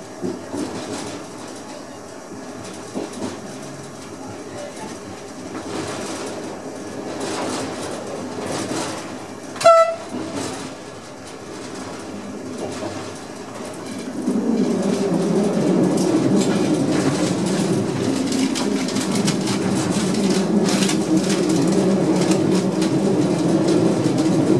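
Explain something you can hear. A train rumbles along the tracks, growing louder partway through.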